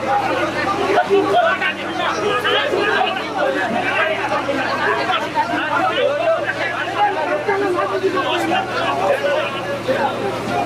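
A large crowd of men shouts and argues loudly all at once, close by, outdoors.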